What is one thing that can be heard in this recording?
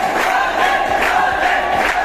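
A young man sings loudly.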